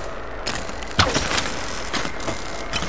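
Electric sparks crackle and fizz.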